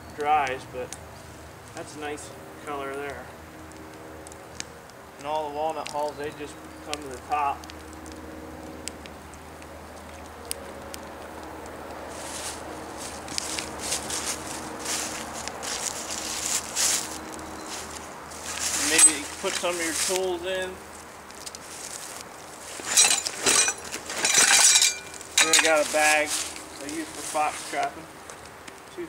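A wood fire crackles under a pot.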